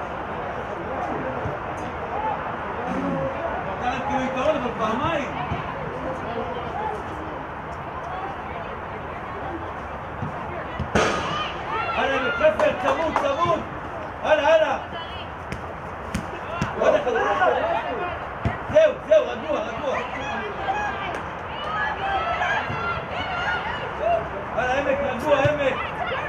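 Young women shout and call out to each other across an open field.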